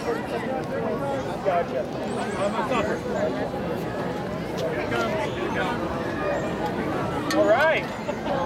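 A crowd of adults and children cheers and shouts outdoors.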